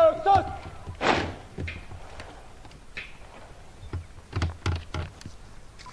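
Soldiers stamp their boots on the ground in unison.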